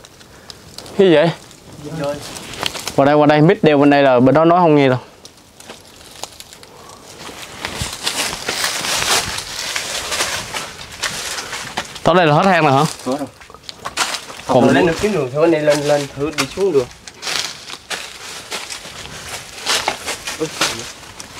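Footsteps crunch on dry leaves and rock.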